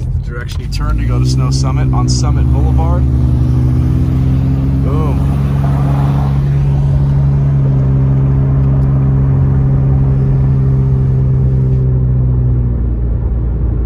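A truck engine roars loudly nearby and then fades.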